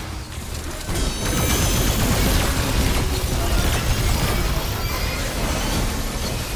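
Explosions boom with deep rumbling.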